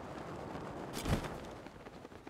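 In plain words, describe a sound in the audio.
Cloth flaps and snaps.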